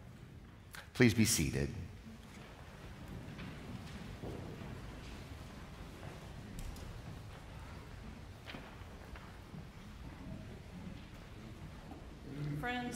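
A man speaks calmly through a microphone in an echoing hall.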